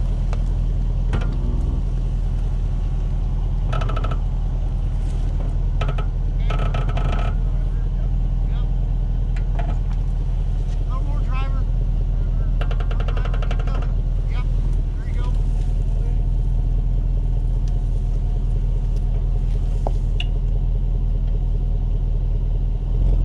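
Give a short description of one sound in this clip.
A car engine rumbles low and steady close by.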